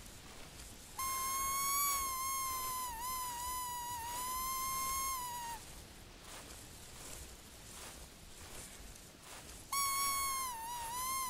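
A whistle call blows long, high, wavering tones.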